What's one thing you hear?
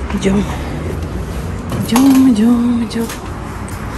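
A door creaks and clicks open.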